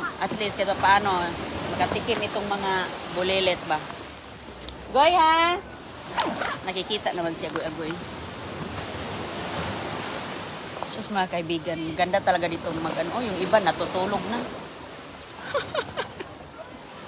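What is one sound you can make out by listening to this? A girl talks close by, with animation.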